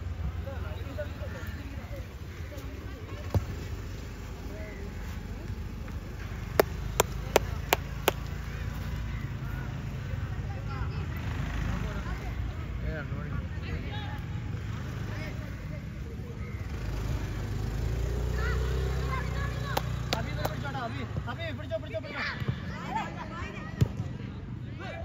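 Young players shout to each other from across an open field.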